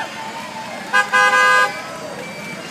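A vehicle horn honks briefly.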